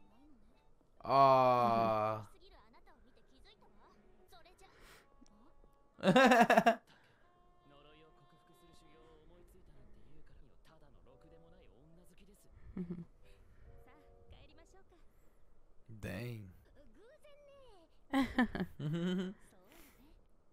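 A young woman talks close into a microphone.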